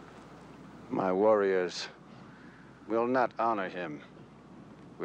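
A man answers slowly in a low, calm voice.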